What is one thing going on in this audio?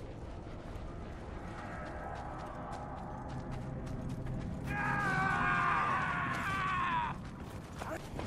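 Footsteps run across rocky dirt.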